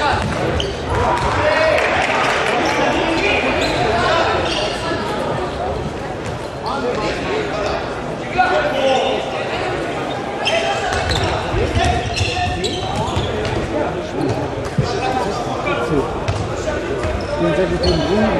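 A crowd of spectators chatters steadily in a large echoing hall.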